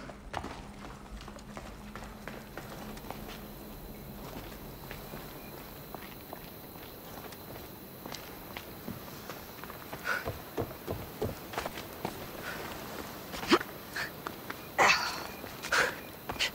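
Footsteps scuff on rock and dirt.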